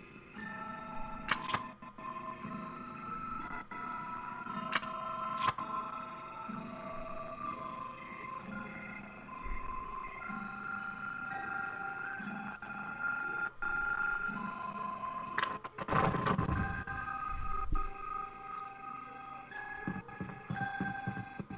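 Soft, tuneful game music plays steadily.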